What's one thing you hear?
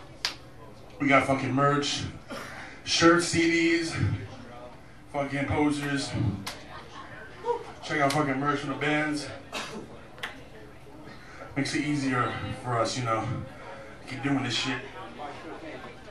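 A man speaks into a microphone, heard through loudspeakers in a hall that echoes.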